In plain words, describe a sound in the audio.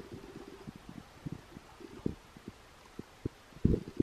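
Water trickles from a watering can into potting soil.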